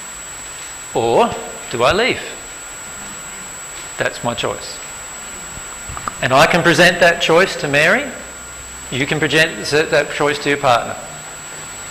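A man speaks calmly through a clip-on microphone, with pauses.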